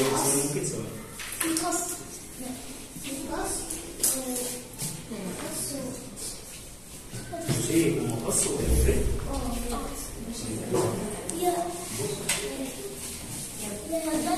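Children chatter and call out in a room.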